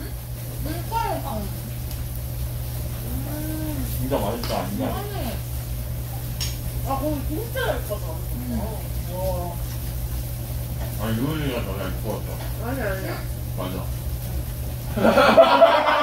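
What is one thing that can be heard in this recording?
Young men and women chat casually around a table, heard through a microphone.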